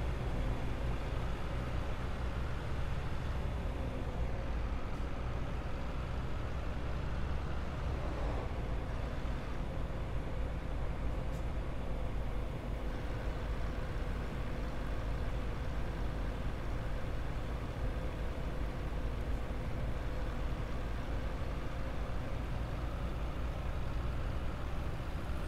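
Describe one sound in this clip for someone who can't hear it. A bus engine drones steadily as the bus drives along a road.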